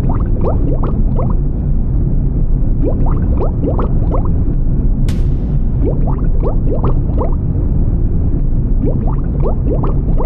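Water rumbles steadily in a deep, muffled drone.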